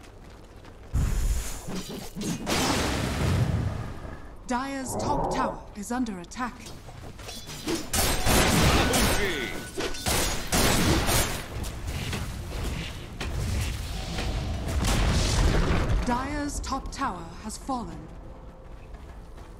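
Game spells crackle and clash in a fight.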